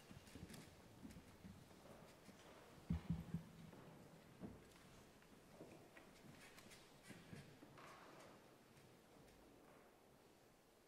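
Two players play a grand piano together, in a room with a slight echo.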